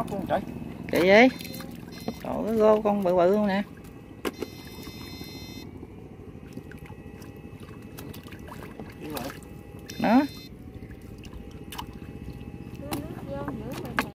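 A net splashes through shallow water.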